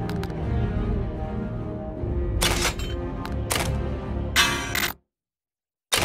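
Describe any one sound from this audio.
Music plays, then cuts off abruptly.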